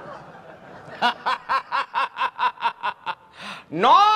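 A man laughs loudly in quick bursts.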